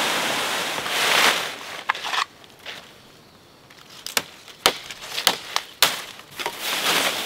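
Dry palm fronds rustle and scrape along the ground as they are dragged.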